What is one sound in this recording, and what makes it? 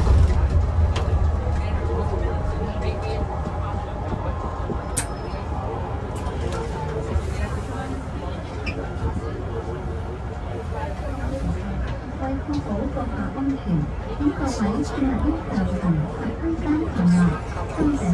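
Bus panels rattle and creak as the bus drives.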